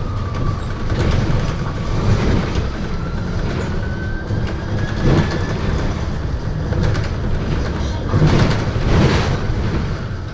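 A bus interior rattles and knocks over bumps.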